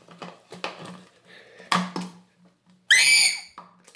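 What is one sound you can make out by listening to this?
A plastic bottle gurgles as it fills with water.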